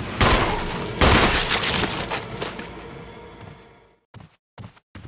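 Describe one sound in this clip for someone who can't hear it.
A gunshot booms and echoes away.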